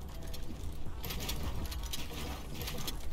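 Wooden building pieces snap into place with quick clattering knocks.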